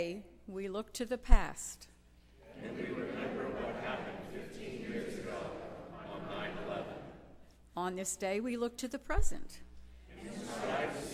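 A choir sings in a large echoing hall.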